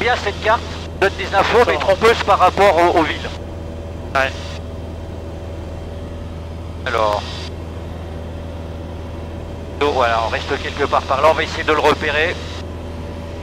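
A man speaks briskly over a crackly headset intercom.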